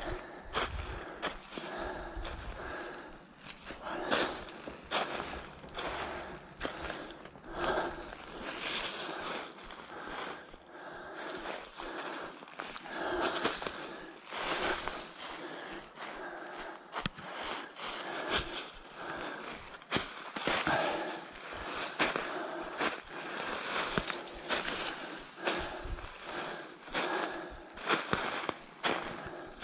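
Footsteps crunch through dry leaves at a steady walking pace.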